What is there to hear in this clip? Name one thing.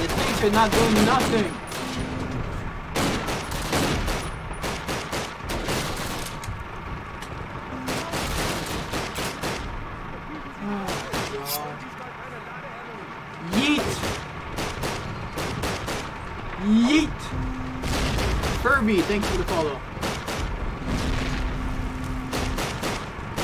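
Rapid gunshots crack again and again.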